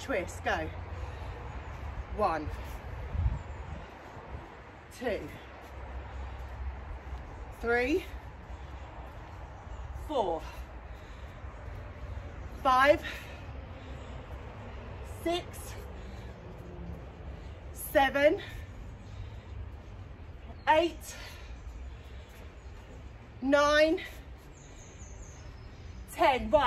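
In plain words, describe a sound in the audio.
Feet thud softly on an exercise mat.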